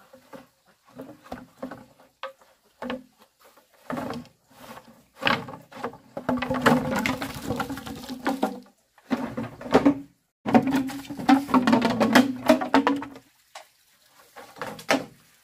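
Bamboo poles knock hollowly against each other.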